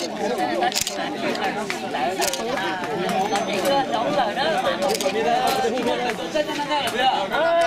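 A crowd of men and women chatter loudly nearby outdoors.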